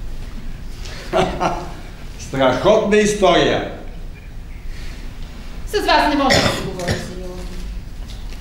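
A middle-aged man speaks with feeling on a stage, heard from across a hall.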